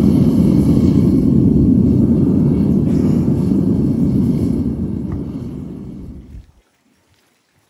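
A gas burner roars loudly in a furnace, then cuts off.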